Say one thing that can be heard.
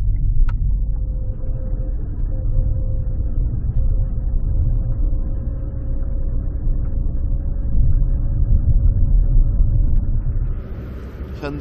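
Tyres rumble on a road.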